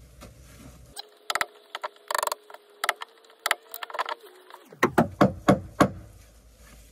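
A mallet knocks sharply on a chisel cutting into wood.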